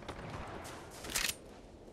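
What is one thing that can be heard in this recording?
A weapon is drawn with a short metallic click.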